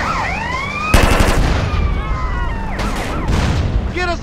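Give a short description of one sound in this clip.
A car explodes with a loud blast.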